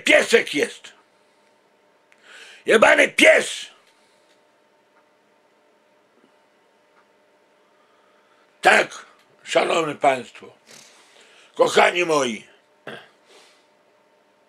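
A middle-aged man speaks close to the microphone in short, animated bursts with pauses.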